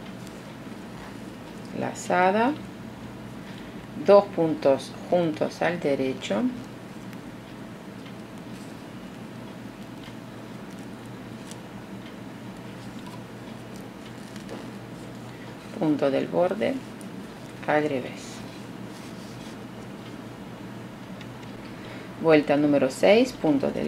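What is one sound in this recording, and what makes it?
Wooden knitting needles tap and click softly.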